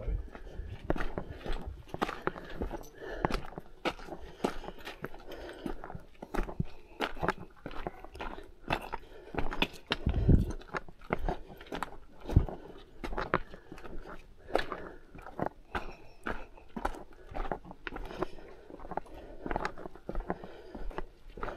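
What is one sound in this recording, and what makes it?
Footsteps crunch and scrape on loose rocks close by.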